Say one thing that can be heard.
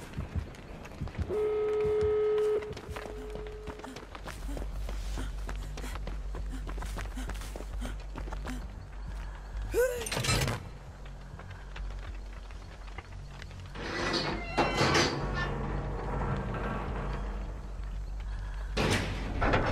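Footsteps crunch quickly through grass and leaves.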